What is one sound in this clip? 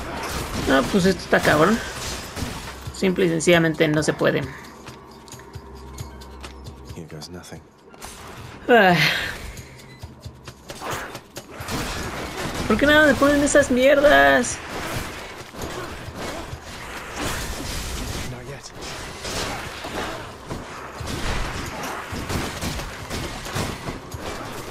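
Blades slash and clang in quick bursts of combat.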